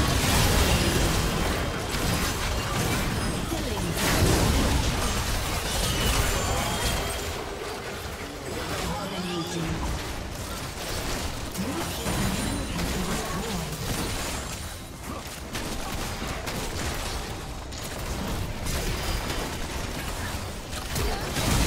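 Video game spells blast and crackle in a busy fight.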